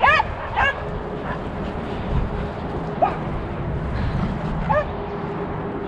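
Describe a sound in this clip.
Dogs bark outdoors in short, sharp yelps.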